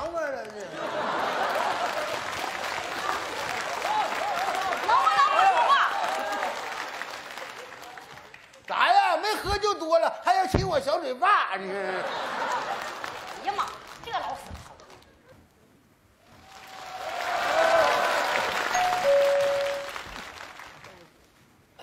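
An audience laughs loudly in a large hall.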